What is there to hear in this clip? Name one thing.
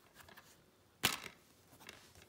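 A plastic case clicks open.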